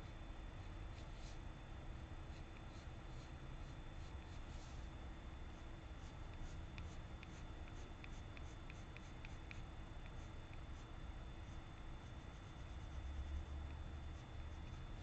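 A brush pen scratches and taps softly on paper.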